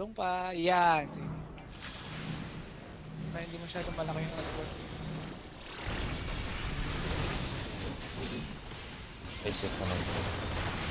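Magic blasts and battle effects crackle and boom.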